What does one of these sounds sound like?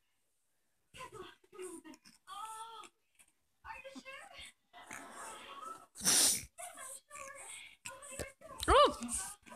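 A puppy whimpers softly.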